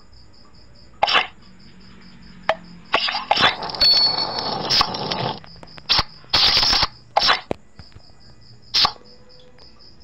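Playing cards snap down onto a table with short crisp clicks.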